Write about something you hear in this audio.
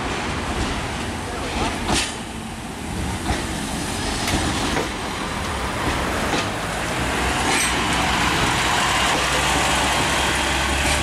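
A diesel train engine rumbles as a train pulls past.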